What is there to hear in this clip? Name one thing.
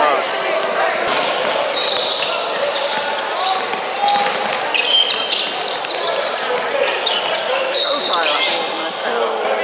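Sneakers squeak sharply on a hardwood floor.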